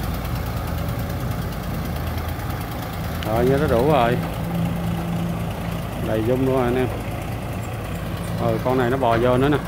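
Heavy diesel engines rumble steadily close by.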